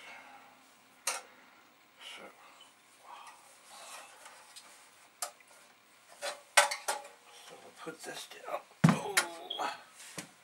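Computer parts and a circuit board clatter and knock as they are handled.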